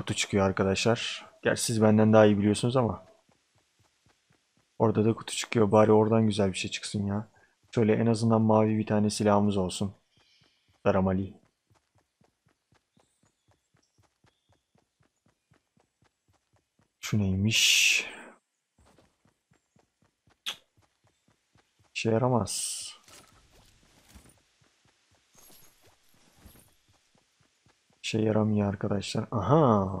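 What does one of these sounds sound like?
A young man talks calmly and close into a microphone, pausing now and then.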